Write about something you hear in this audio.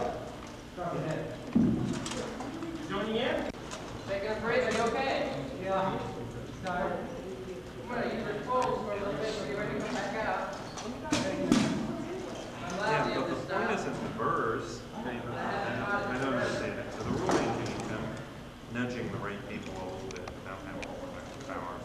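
A man talks steadily nearby.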